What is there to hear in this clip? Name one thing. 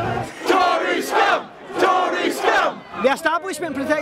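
A crowd chants loudly outdoors.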